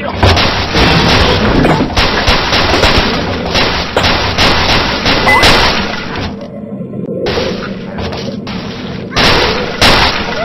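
Game blocks crash and tumble down with loud clattering.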